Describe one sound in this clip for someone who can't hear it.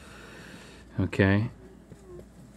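A man murmurs briefly nearby.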